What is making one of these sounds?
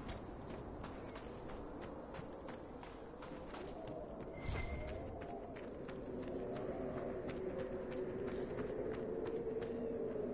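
Hooves clop steadily as a horse gallops.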